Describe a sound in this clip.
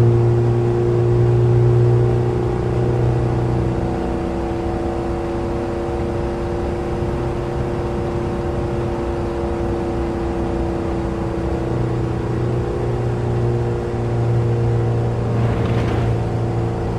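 A small car engine drones steadily, its pitch rising and falling as the car speeds up and slows.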